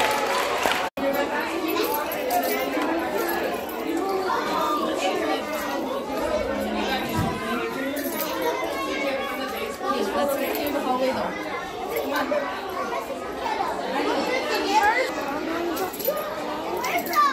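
Young children chatter in the background.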